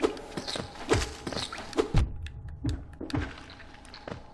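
Sword slashes and hits ring out in quick bursts.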